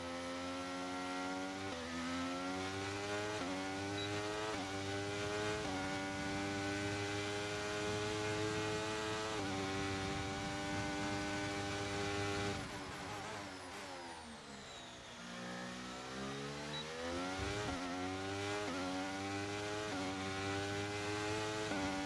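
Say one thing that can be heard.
A racing car engine whines loudly, rising in pitch through each gear and dropping sharply at each shift.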